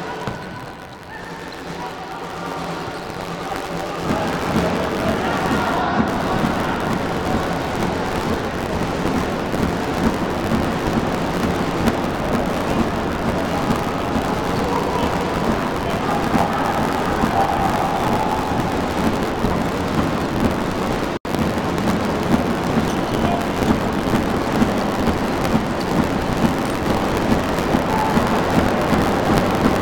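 A ball thumps as players kick it.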